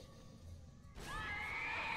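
Monsters shriek as they close in.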